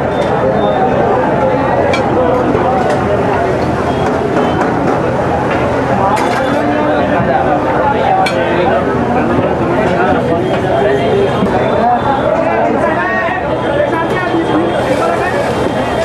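Many men talk loudly nearby in a busy crowd.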